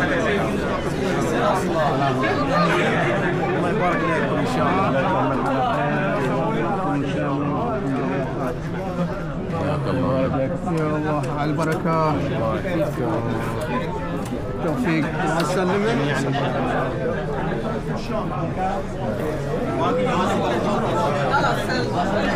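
A crowd of men talks and murmurs all around, close by.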